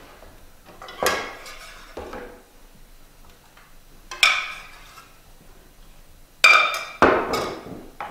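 Metal kitchenware clinks and clatters.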